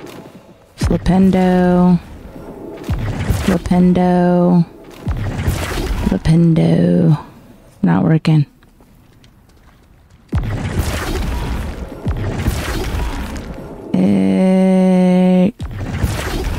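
A magical tone hums steadily and then cuts off.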